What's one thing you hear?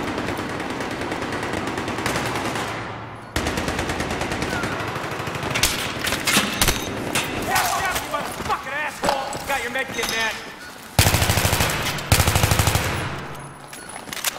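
An automatic rifle fires in rapid, loud bursts.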